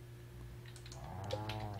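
A game animal bleats briefly.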